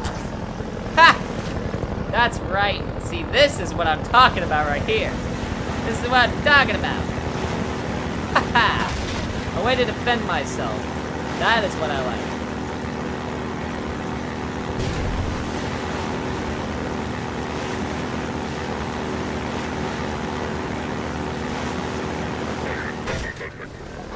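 A boat engine drones steadily.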